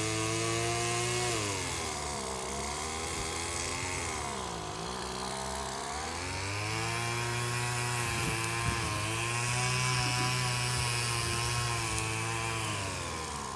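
Bees buzz loudly around a hive, the droning hum rising and falling in pitch.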